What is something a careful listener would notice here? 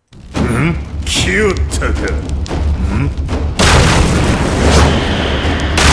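A bear growls.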